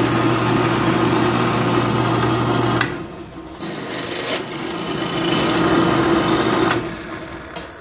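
A drill press motor hums and whirs steadily.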